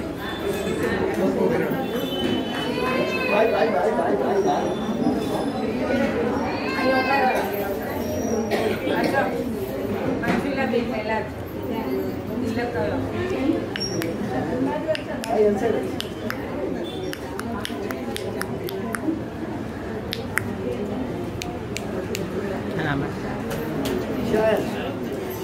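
A small group of men and women chatter and talk over each other close by, indoors.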